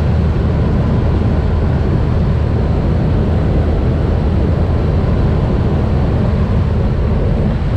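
Wind roars loudly past an open aircraft door.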